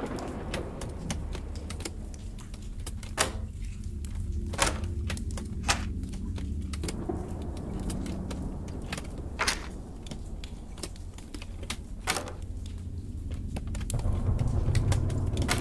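A metal lock clicks sharply as it is picked.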